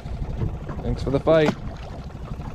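A fish splashes back into the water.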